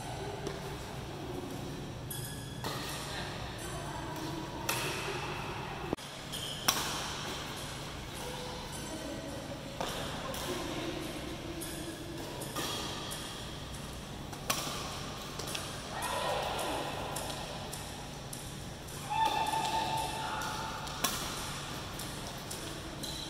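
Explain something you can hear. Rackets smack a shuttlecock back and forth with sharp pops that echo in a large hall.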